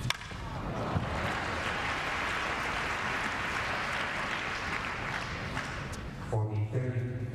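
A crowd applauds loudly in a large arena.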